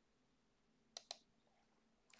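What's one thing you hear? A computer mouse clicks twice.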